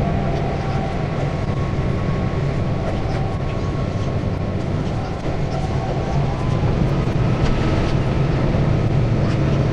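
Train wheels squeal faintly on curved track.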